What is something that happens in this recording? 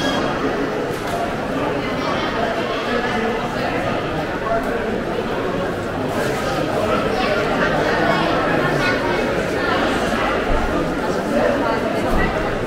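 Footsteps shuffle and tap on a hard floor.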